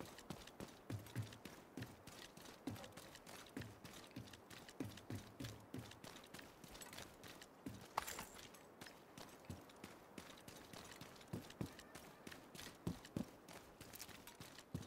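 Heavy footsteps thud quickly on hard ground.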